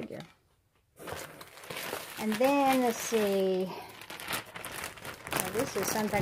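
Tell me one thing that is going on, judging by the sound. A plastic bag rustles and crinkles as hands handle it.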